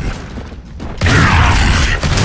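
Gunfire rattles loudly.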